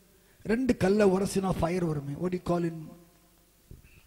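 A middle-aged man speaks loudly into a microphone through a loudspeaker.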